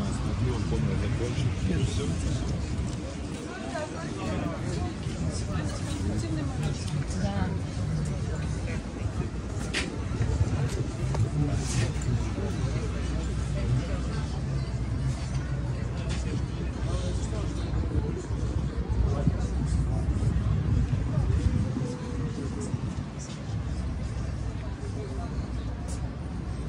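Outdoors, people chatter nearby.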